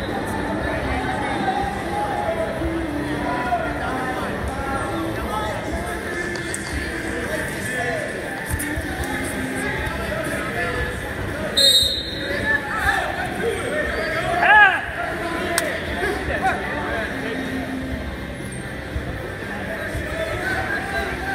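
A crowd murmurs and chatters throughout a large echoing gym.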